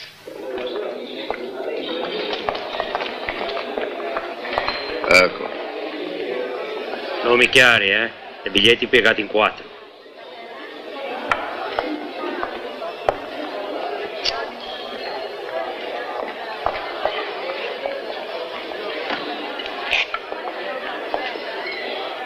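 A crowd of people murmurs and chatters.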